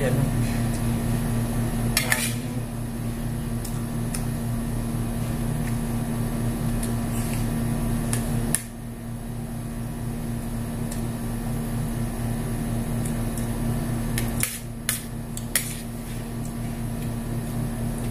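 A spoon scrapes and clinks against a metal plate.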